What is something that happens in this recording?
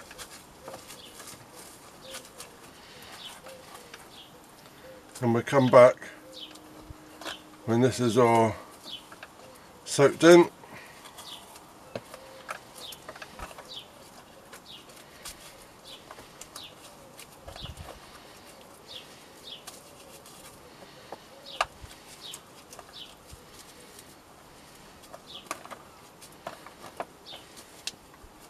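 Fingers press and rustle soft soil close by.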